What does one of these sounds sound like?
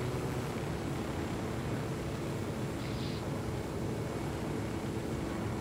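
A helicopter's rotor thumps and its engine whirs steadily.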